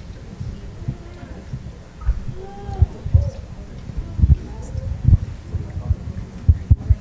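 A man speaks quietly.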